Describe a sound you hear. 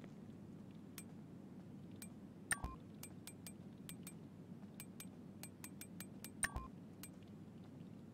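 Menu selections click softly, one after another.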